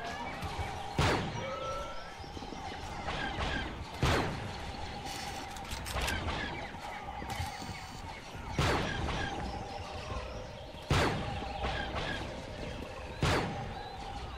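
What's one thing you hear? Sniper rifle shots crack loudly with a short echo.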